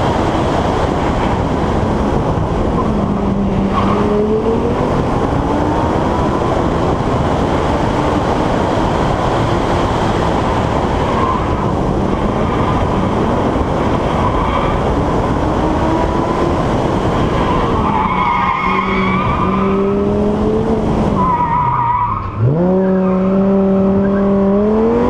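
A car engine revs up and down, shifting gears.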